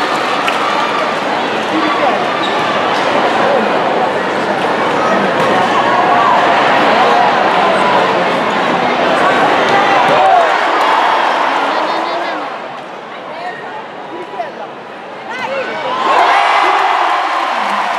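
A large crowd cheers loudly in an echoing arena.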